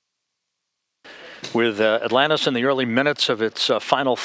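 A man speaks calmly over a radio link.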